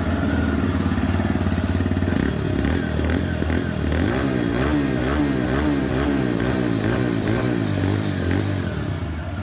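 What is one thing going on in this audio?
A motorcycle engine idles with a steady, throbbing rumble close by.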